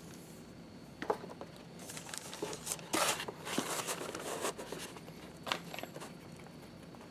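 Fingers handle and rub a piece of stiff leather on cardboard.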